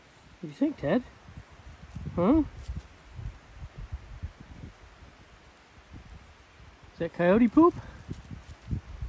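A dog sniffs and snuffles at the ground.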